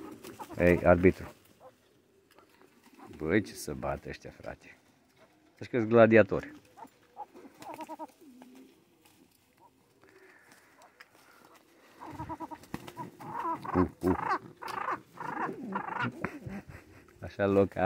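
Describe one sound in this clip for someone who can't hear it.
Pigeons flap their wings in a noisy scuffle.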